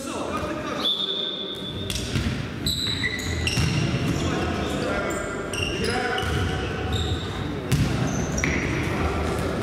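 Sneakers squeak sharply on a wooden floor in an echoing hall.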